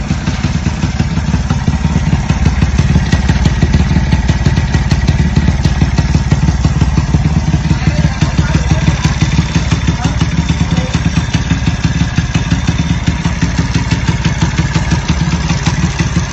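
A motorcycle engine idles with a steady, throaty, rapid putter close by.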